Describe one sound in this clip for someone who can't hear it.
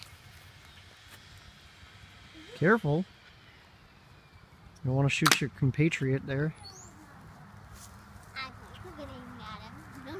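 A toy dart gun clicks as it fires.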